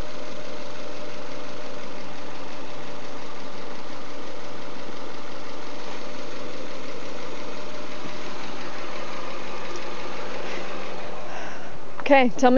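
A car engine idles with a steady hum.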